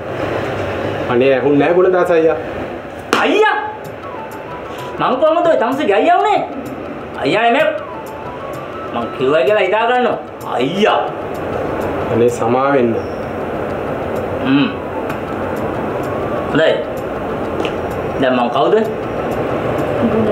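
A second adult man answers in short, clipped phrases.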